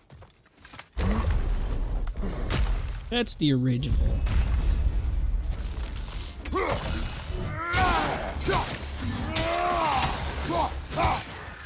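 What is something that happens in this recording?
Heavy blows and rumbling crashes sound in a fierce fight.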